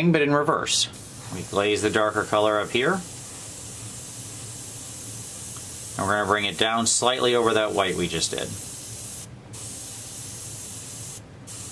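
An airbrush hisses softly.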